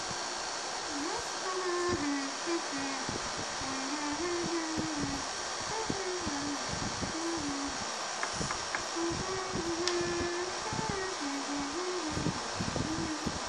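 A young child talks nearby in a high voice.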